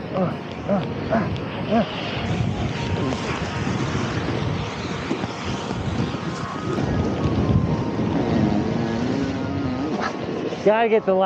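A snowboard scrapes and hisses through snow.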